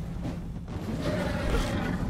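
A fiery blast bursts with a loud crack.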